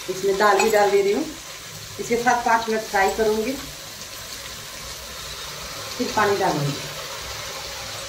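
Dry lentils pour and rattle into a metal pot.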